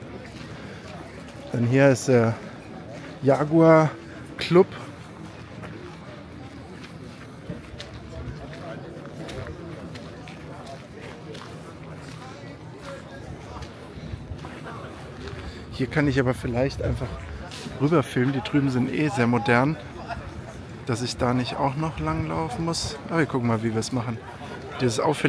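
A crowd murmurs faintly in the distance outdoors.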